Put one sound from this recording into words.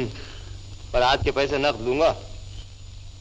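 A second man speaks with animation.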